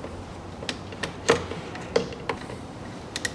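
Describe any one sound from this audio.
A plastic cap clicks and rattles as a hand unscrews it.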